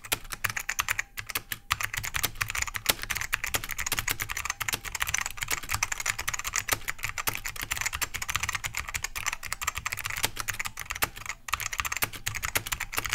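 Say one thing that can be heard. Fingers type quickly on a clacky mechanical keyboard.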